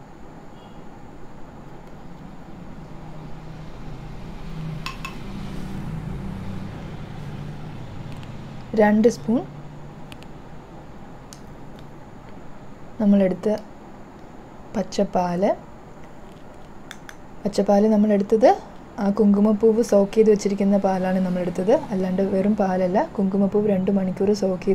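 A wooden spoon scrapes and taps against a bowl.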